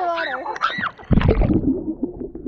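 Water splashes as a swimmer plunges in.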